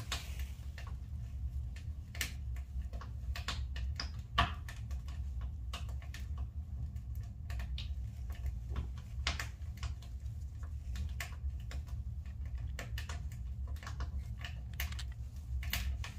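Small metal parts click and tap as they are handled close by.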